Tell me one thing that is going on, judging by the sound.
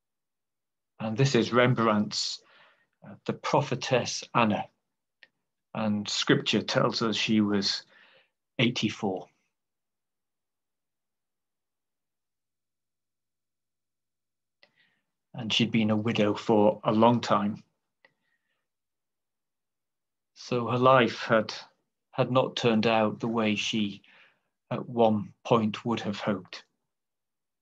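A middle-aged man speaks calmly through a microphone on an online call, with long pauses.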